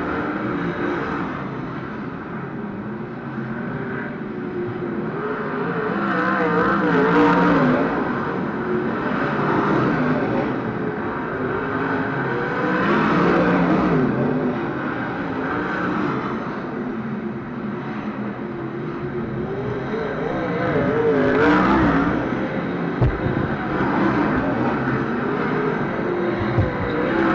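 Racing cars roar around a dirt track, rising and falling as they pass.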